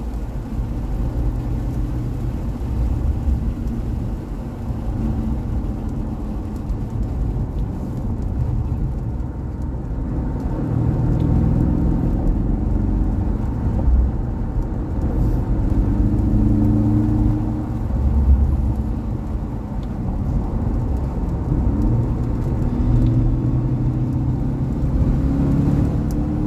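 A sports car engine drones, heard from inside the cabin as the car drives along.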